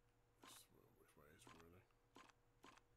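A man speaks briefly and casually, close to a microphone.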